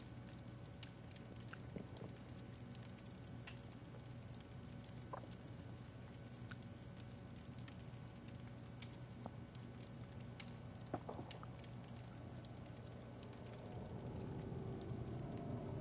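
A campfire crackles and pops steadily.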